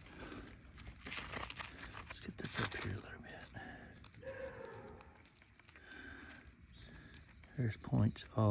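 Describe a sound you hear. A gloved hand scrapes and crumbles dry soil.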